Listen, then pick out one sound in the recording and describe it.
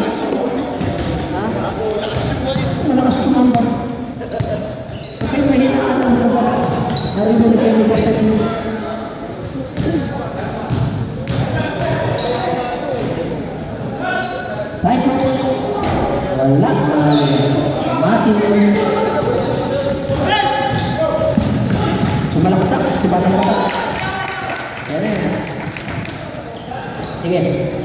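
Men shout and talk across the echoing gym.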